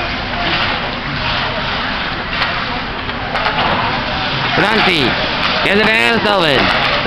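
Skates scrape across ice in a large echoing rink.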